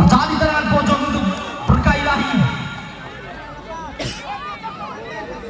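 A crowd of spectators shouts and chatters nearby outdoors.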